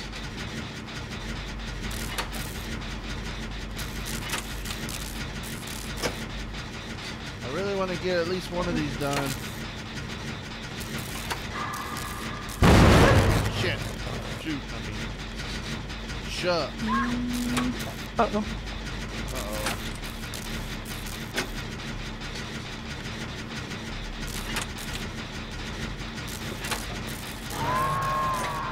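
A machine hums steadily with faint mechanical clanking.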